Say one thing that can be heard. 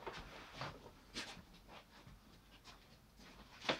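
Clothing rustles close by as a person moves past.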